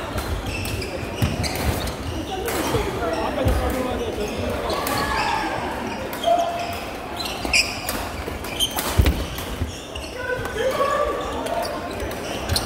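Shuttlecocks are hit with sharp pops in a large echoing hall.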